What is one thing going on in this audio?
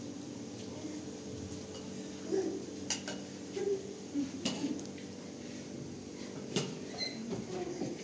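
A spoon scrapes and clinks against a dish.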